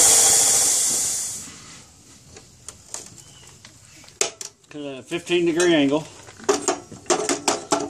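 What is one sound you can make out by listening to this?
A metal vise clicks and clanks as it is tightened by hand.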